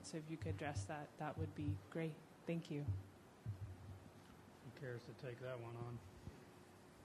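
A woman speaks in a large room, heard a little off-microphone.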